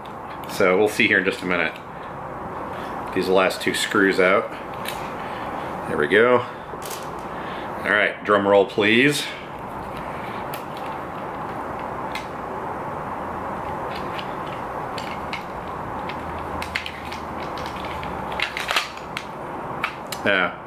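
Plastic parts click and rattle in a man's hands.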